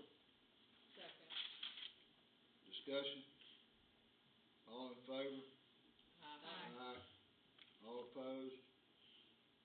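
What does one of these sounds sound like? A man speaks calmly through a microphone in short phrases.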